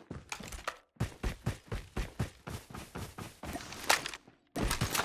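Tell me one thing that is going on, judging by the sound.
Footsteps thud quickly and evenly on the ground.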